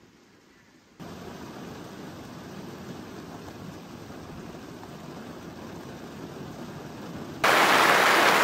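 Rain patters against a window.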